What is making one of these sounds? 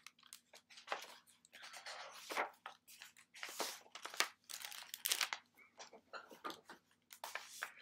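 Book pages rustle and flip.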